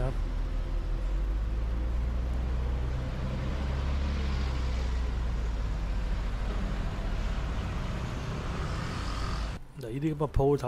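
A large vehicle's engine rumbles low and steady close by.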